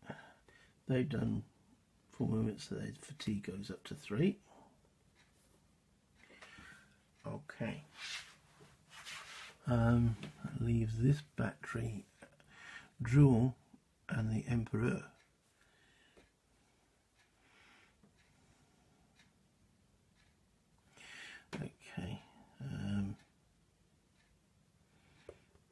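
Small game pieces tap softly as they are moved on a board.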